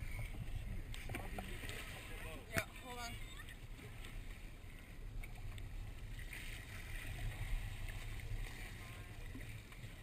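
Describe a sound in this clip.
Water splashes and gurgles against the side of a small boat.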